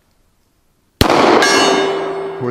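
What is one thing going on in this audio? A pistol fires a single loud shot that echoes away outdoors.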